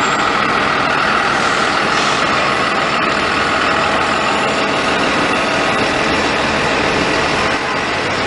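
A bus engine rumbles loudly nearby as the bus pulls away.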